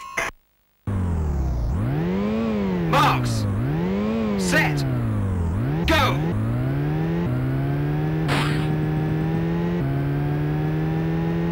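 A buzzy electronic car engine revs up and down, then drones higher through the gears.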